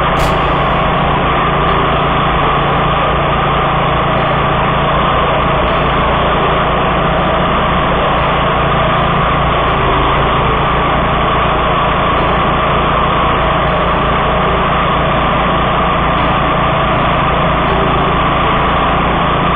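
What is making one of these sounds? A small petrol engine roars steadily close by.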